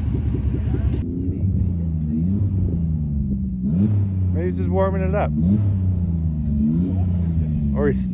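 A pickup truck engine revs and strains in the distance.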